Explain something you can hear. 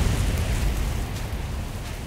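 Electricity crackles and sizzles.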